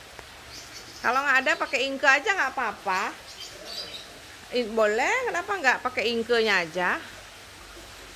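A middle-aged woman talks calmly close to the microphone.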